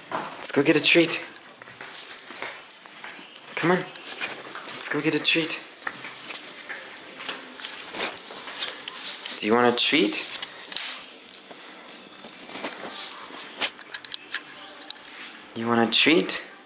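A dog whines and yelps in short high bursts.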